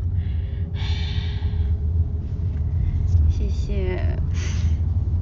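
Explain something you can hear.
A young woman speaks close by, muffled through a mask.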